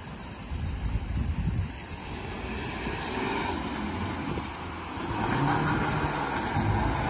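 A car engine rumbles and revs loudly.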